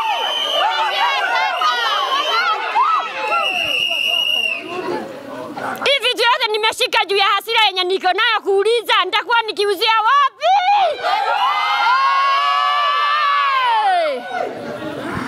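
A group of women sing and ululate loudly nearby.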